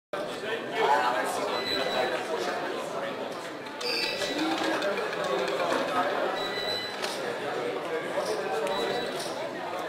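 Gaming chips click and clatter.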